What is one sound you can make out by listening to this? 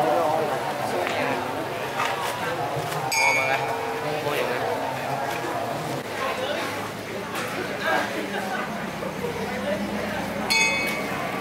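A large crowd chatters loudly all around outdoors.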